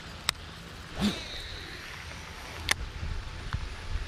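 A fishing reel clicks and whirs during a cast.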